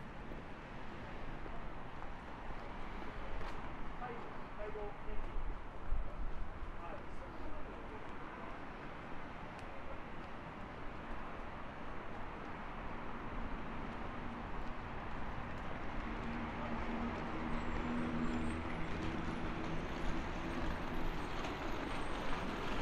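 A busy street hums steadily outdoors.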